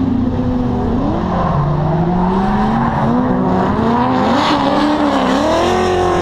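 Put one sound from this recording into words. Car tyres screech as cars slide around a track.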